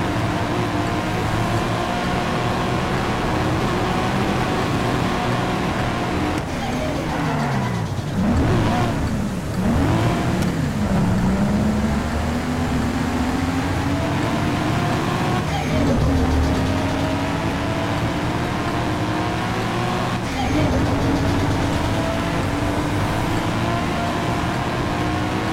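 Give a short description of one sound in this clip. A car engine drones steadily and revs up as gears shift.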